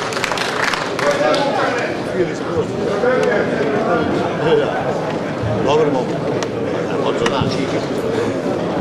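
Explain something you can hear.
A man sings loudly in a strained, wavering voice.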